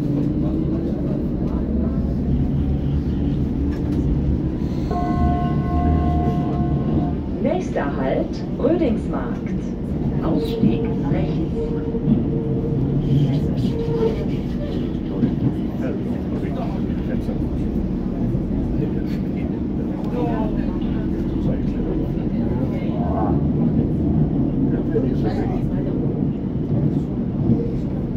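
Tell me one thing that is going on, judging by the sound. A train rumbles and rattles steadily along the tracks.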